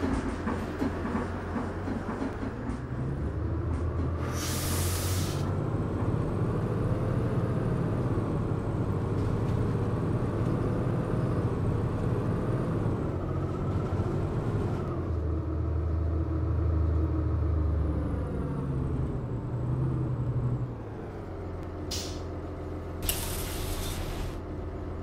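A diesel articulated city bus engine drives and then slows to a stop.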